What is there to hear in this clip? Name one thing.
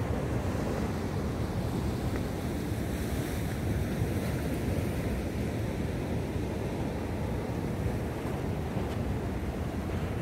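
Waves wash and churn against rocks outdoors.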